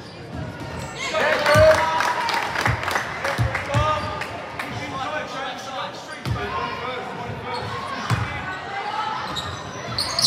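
Spectators and players shout and call out in an echoing gym.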